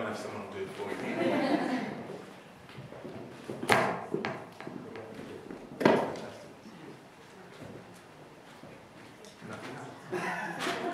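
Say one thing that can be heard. An elderly man speaks into a microphone in a large echoing hall.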